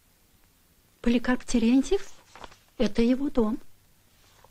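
A woman speaks calmly in short phrases.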